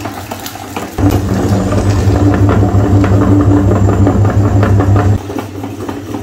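An electric grinder motor hums loudly.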